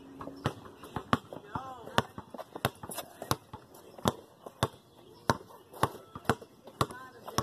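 A basketball bounces repeatedly on pavement.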